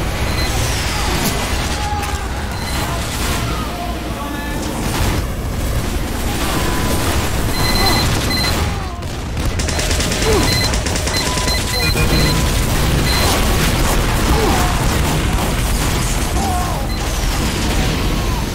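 Gunfire and explosions crackle in a fast game battle.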